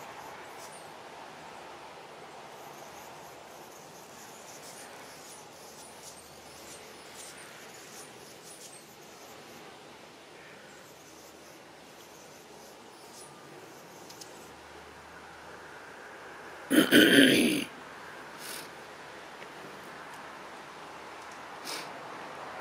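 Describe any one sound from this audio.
Seabirds call faintly over open water.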